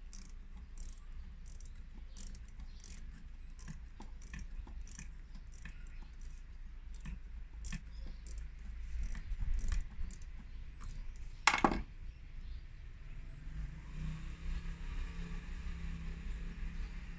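Hands handle wires and clips with soft clicks and rustles.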